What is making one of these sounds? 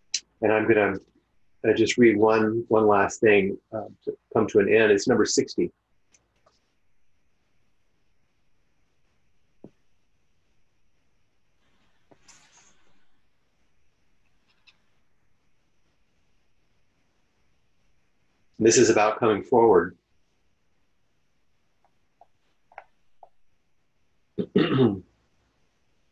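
An older man speaks slowly and calmly into a microphone, heard as if over an online call, with long pauses.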